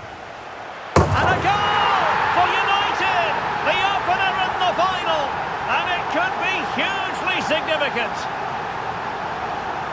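A large stadium crowd bursts into a loud roar and cheers.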